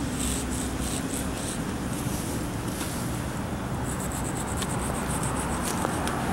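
Chalk scrapes on pavement.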